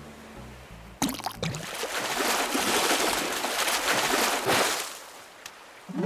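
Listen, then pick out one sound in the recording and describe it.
Water splashes loudly as a fish is reeled in.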